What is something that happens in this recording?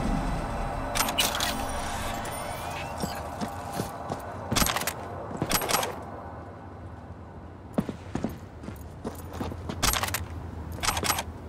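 Footsteps crunch on dry ground.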